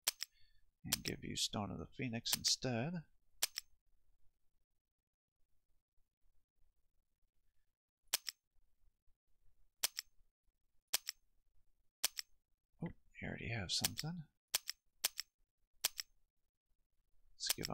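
Menu buttons click sharply, one at a time.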